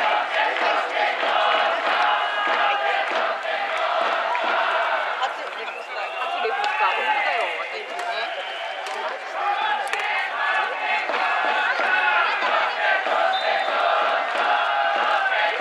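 A large stadium crowd cheers outdoors.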